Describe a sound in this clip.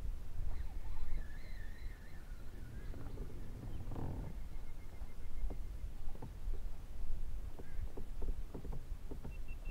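A fishing reel clicks as it is wound in.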